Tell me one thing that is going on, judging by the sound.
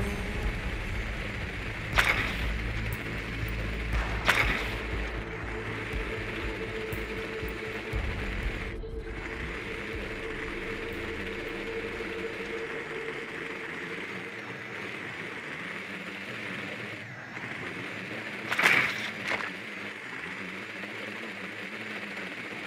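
A small motor hums steadily as a little drone rolls across the floor.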